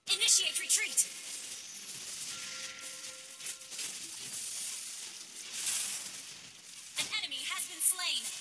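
Game spell effects whoosh and crackle during a fight.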